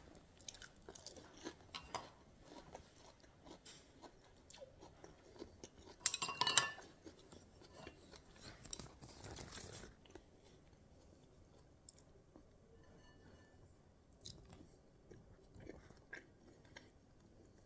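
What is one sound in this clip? A young man slurps noodles noisily.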